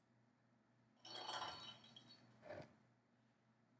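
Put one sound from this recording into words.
A cat bats a small plastic ball that rattles across a bathtub.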